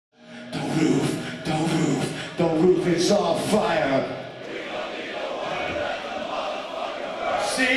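A rock band plays loudly through a large sound system.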